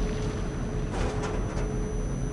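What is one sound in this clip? A metal locker door clanks open.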